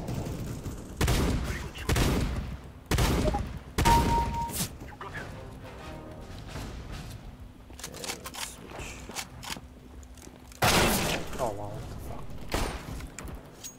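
Gunshots crack loudly in a video game.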